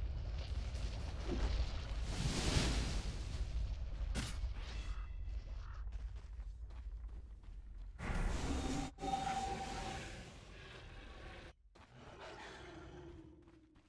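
Video game spell effects whoosh and crackle during a battle.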